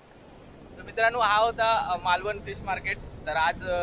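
A man speaks close up with animation.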